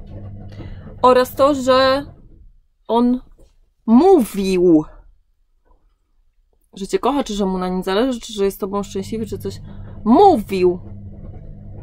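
A young woman speaks close to a microphone, with animation and pauses.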